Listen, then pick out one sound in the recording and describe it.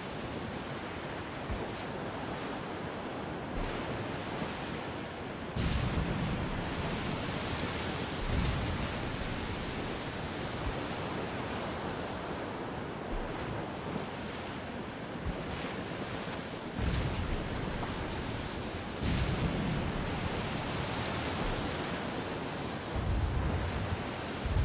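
Ocean waves wash against a sailing ship's hull.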